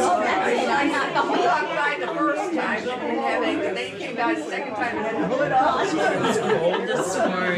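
An elderly woman talks nearby.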